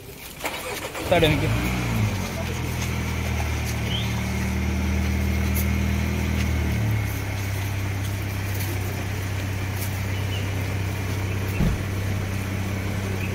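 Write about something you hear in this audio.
A car engine starts and idles steadily.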